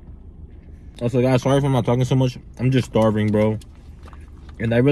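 A young man speaks calmly close to a microphone.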